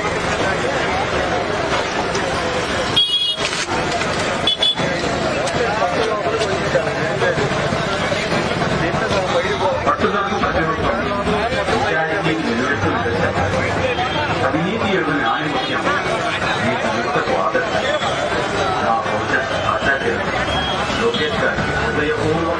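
A crowd of men chatters loudly outdoors.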